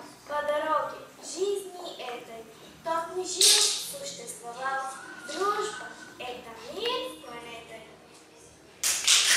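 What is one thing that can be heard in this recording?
A young girl sings in a large echoing room.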